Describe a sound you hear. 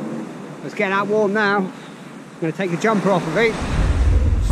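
A man talks close to the microphone.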